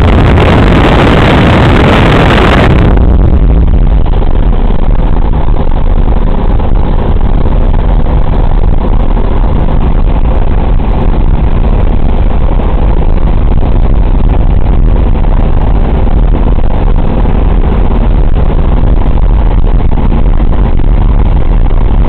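Radial piston engines of a four-engine bomber drone in flight, heard from inside the fuselage.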